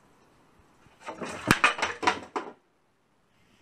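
Wooden boards fall and clatter onto a concrete floor.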